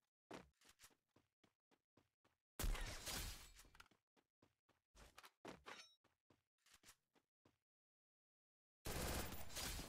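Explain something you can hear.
Footsteps run on grass.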